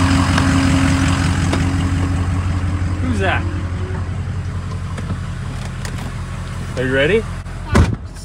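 A truck engine idles with a steady low hum.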